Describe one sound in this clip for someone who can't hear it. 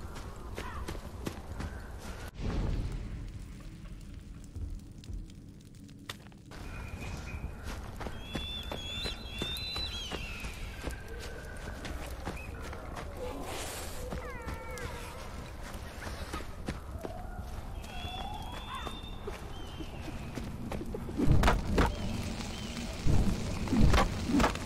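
A torch fire crackles steadily.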